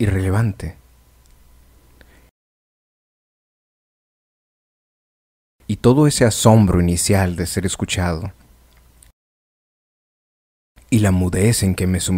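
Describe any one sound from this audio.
A middle-aged man speaks calmly and close to a microphone, with pauses.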